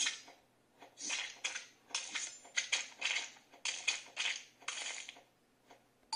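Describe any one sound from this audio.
A blender whirs in bursts from a small tablet speaker.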